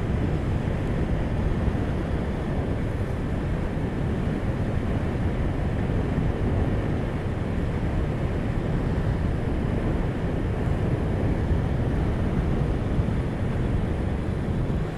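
Wind rushes past a moving vehicle.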